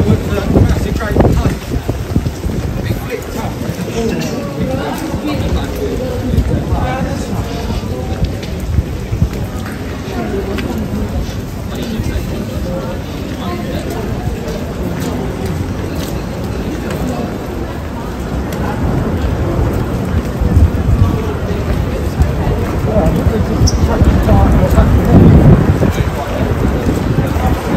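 A crowd murmurs in a busy street outdoors.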